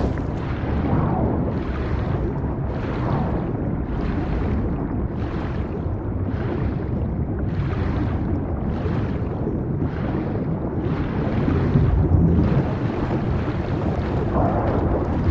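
Water swishes in a steady rhythm of swimming strokes underwater.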